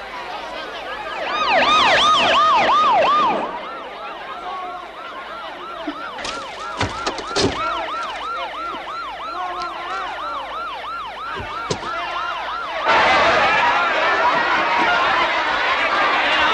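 A police siren wails loudly and steadily.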